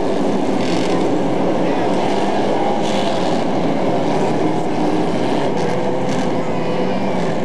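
A pack of dwarf race cars roar by.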